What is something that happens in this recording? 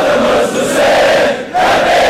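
A man leads a chant into a microphone, heard over loudspeakers.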